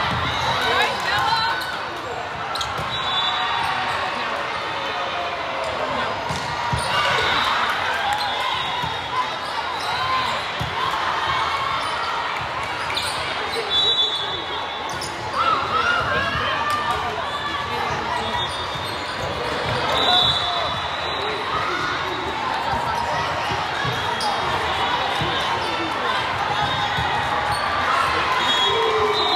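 Young women players shout and call out to each other in an echoing hall.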